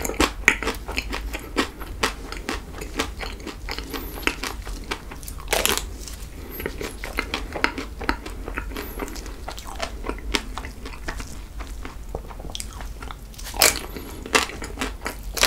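A young man chews food loudly and wetly close to a microphone.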